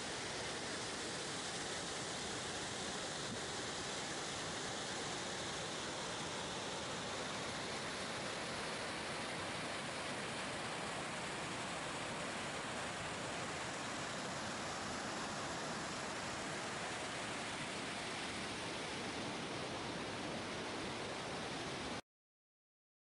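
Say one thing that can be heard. A waterfall roars steadily over rocks close by.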